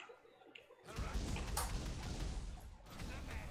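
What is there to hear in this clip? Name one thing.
Fire crackles and bursts.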